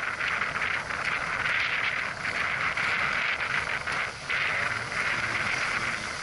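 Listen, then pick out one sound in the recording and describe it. Wind blows hard across the microphone.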